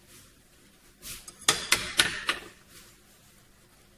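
Ceramic dishes clink as they are set down on a hard counter.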